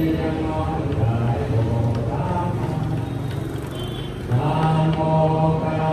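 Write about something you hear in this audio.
A crowd of men and women sings together in unison.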